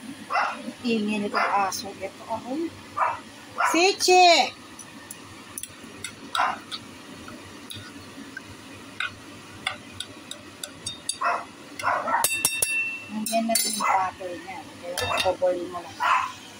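A glass lid clatters onto a pan.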